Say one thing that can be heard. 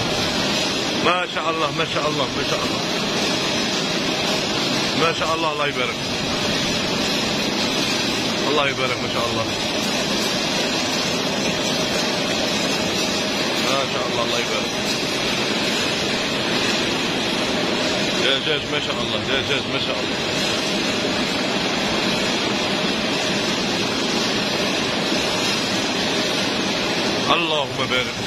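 Men talk nearby in a loud, echoing hall.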